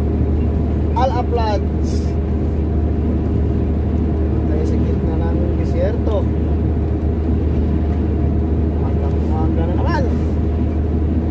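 A man speaks briefly and calmly, close by.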